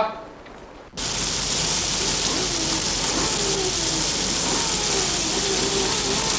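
Heavy rain pours down steadily.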